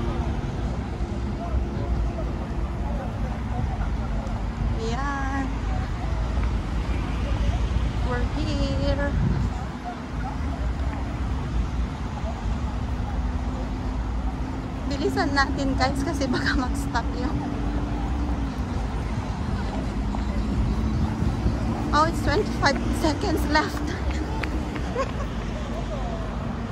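Traffic hums steadily along a nearby road.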